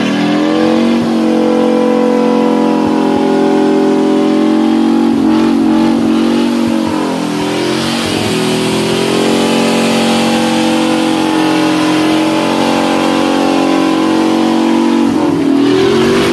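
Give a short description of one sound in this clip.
Tyres squeal and hiss as they spin on asphalt.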